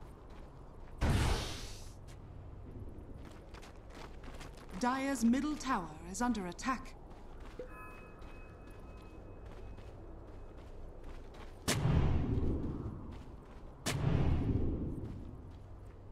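Video game spell effects burst with sudden whooshing blasts.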